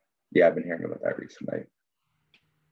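A man speaks briefly through an online call.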